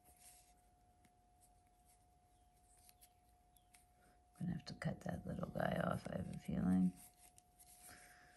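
A crochet hook softly rasps against yarn.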